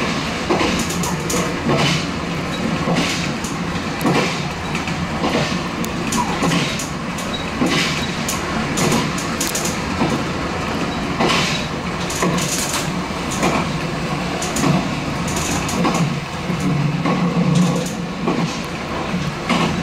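Train wheels clack over rail joints at intervals.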